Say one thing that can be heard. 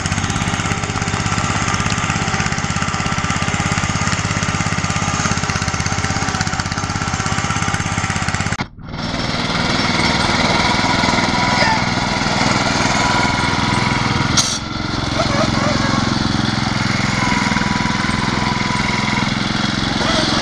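A small engine drones steadily close by.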